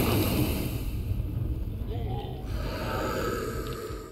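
Explosions boom with a heavy rumble.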